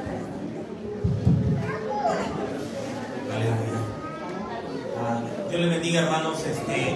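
A man speaks through a microphone over loudspeakers in an echoing room.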